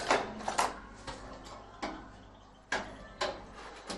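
Metal parts knock and tap against each other.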